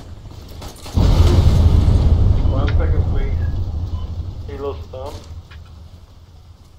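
An explosion booms nearby and rumbles away.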